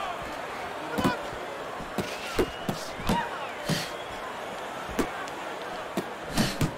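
Boxing punches land with heavy thuds.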